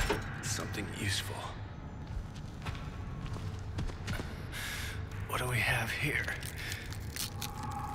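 Footsteps shuffle across a gritty floor.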